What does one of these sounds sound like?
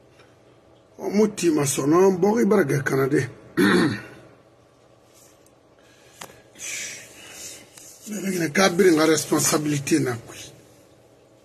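An elderly man speaks with animation close to a microphone, pausing between phrases.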